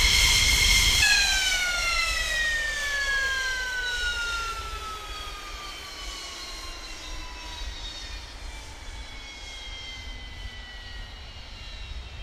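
An F-16 jet engine spools down, its whine falling in pitch.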